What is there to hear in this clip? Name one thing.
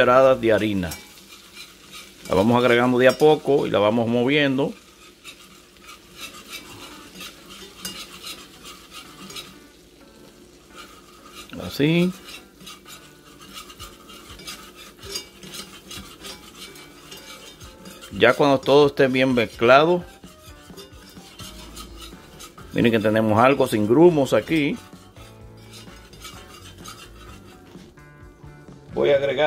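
A metal whisk scrapes and clinks against a pot as it stirs a liquid.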